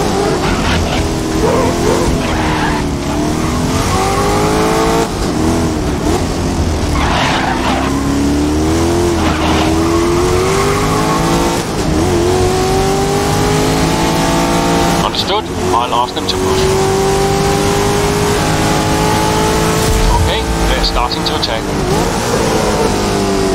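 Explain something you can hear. Tyres squeal on the track through corners.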